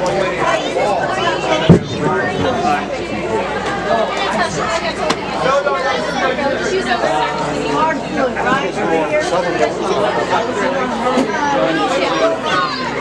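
Many voices chatter and shout across a large echoing hall.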